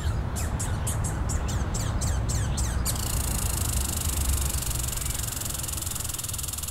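Squirrels nibble and crunch on seeds close by.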